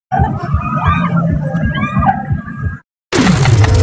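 A fairground ride's machinery rumbles and whooshes.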